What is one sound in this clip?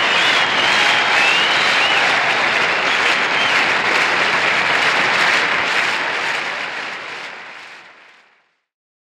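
A large audience applauds loudly, then the applause fades away.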